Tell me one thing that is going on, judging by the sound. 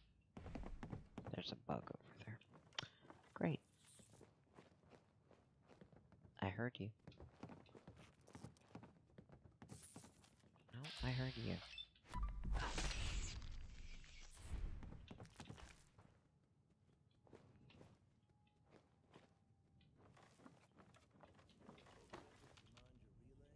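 Footsteps thud across a creaky floor.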